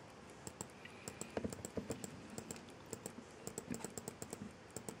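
Radio static crackles with rapid, uneven clicks.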